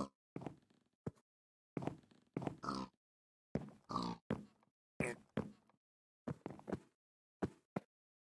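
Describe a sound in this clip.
Pigs grunt and oink in short bursts.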